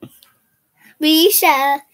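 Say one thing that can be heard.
A young girl sings out loudly and brightly.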